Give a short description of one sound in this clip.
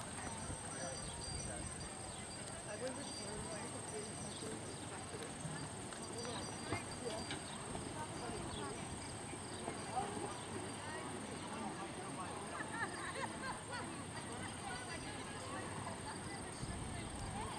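Hooves thud on soft ground as a horse canters.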